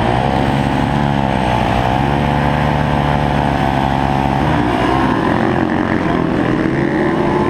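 A motorcycle engine roars loudly up close, revving up and down.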